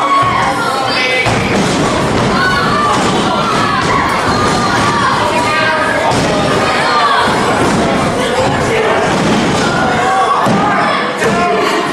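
A crowd chatters and shouts loudly in a large echoing hall.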